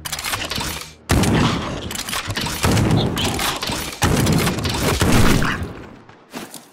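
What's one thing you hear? A gun fires several times in quick bursts.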